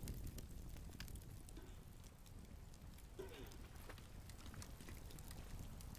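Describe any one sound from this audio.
A fire crackles and roars steadily.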